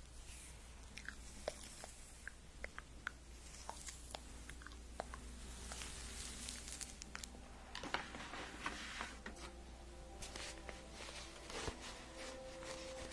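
Fingers tap and brush close to a microphone with soft crackling clicks.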